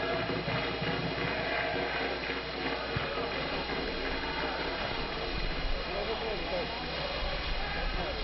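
A large crowd of fans chants and sings in a stadium.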